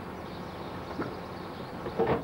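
Something thuds in a car's trunk.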